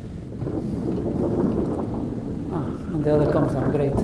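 A large board slides upward with a rumble.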